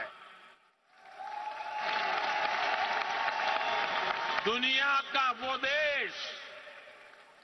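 A large crowd cheers and applauds.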